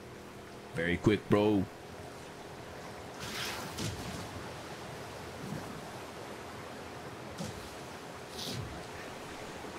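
Water splashes and churns behind a boat.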